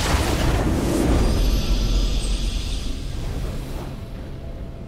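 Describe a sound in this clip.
A triumphant game fanfare plays.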